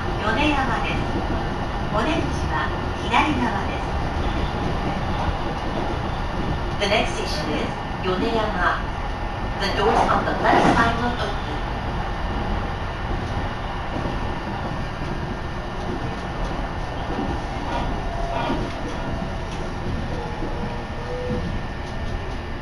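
Wind blows steadily across the microphone.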